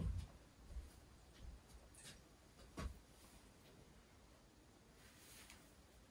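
A jacket rustles.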